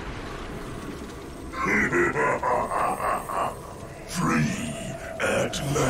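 A magic blast bursts with a whoosh.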